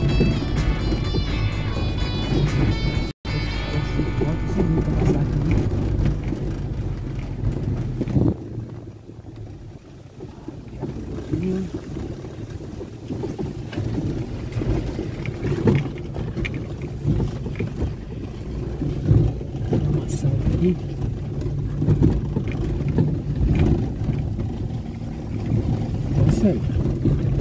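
Tyres bump and rattle over a rough dirt road.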